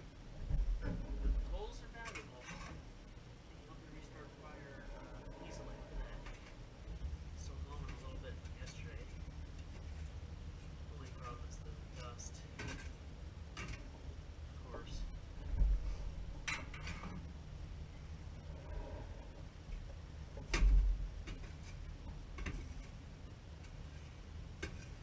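Metal tools scrape and clink against a metal coal basket.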